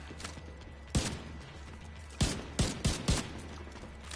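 A rifle fires several loud single shots.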